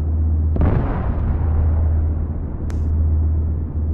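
A large explosion booms and rumbles away.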